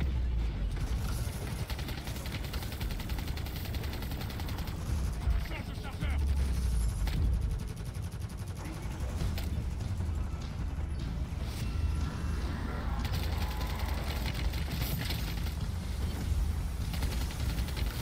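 Rapid automatic gunfire rattles with heavy low booms.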